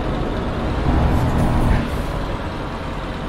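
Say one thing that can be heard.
A passing truck rushes by close alongside.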